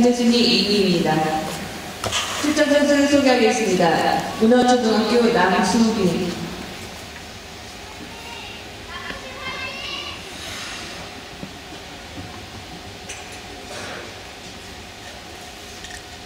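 Ice skates scrape and glide across an ice rink.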